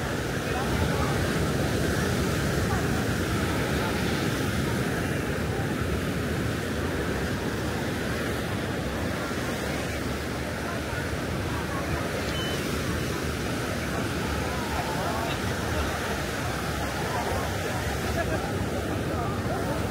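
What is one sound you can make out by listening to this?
Wind blows across the microphone.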